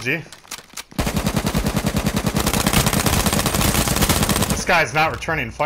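An automatic rifle fires in a rapid, steady burst.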